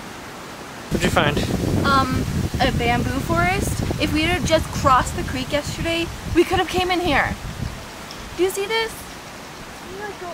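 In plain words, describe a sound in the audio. A young woman talks to the listener up close.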